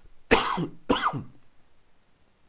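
A middle-aged man coughs twice close by.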